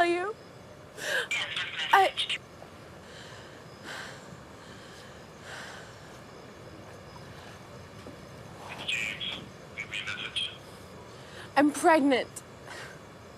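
A young woman speaks quietly on a phone.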